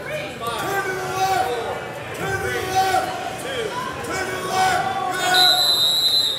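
Men and women in a crowd shout encouragement loudly in an echoing hall.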